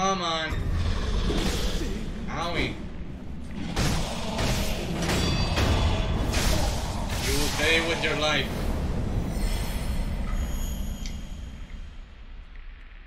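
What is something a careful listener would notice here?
Swords clang and scrape in a fight.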